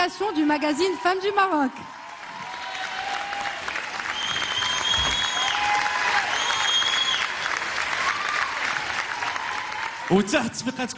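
A woman sings loudly through a microphone.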